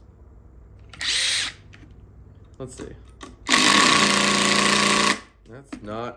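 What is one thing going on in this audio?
A cordless drill whirs in short and long bursts.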